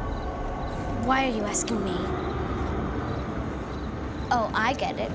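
A young girl speaks nearby in a clear, calm voice.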